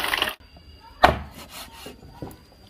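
A cleaver chops meat on a wooden board.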